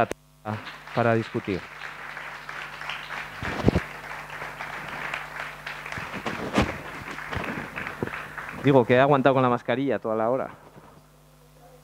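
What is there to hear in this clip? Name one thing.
A man speaks steadily through a microphone in a large room.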